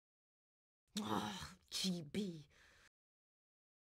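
A young boy yells in a furious rage.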